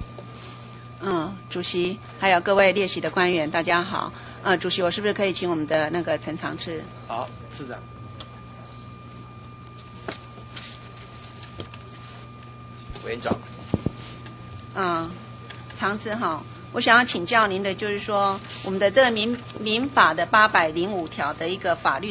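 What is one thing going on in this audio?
A middle-aged woman speaks steadily into a microphone.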